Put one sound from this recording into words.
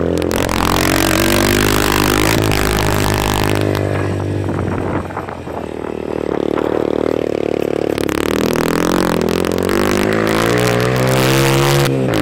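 A small motorcycle engine runs and changes pitch as the bike is ridden.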